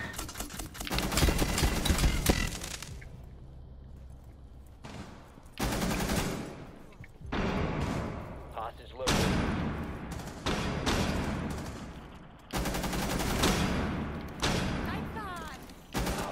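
A rifle fires in loud, sharp bursts.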